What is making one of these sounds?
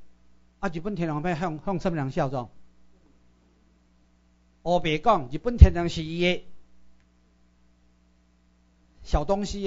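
A middle-aged man speaks with animation through a microphone, in short bursts.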